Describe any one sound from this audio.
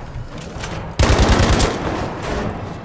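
A rifle fires a rapid burst close by.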